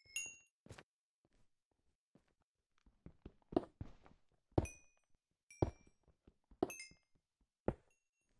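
A pickaxe chips and breaks stone blocks with sharp cracks.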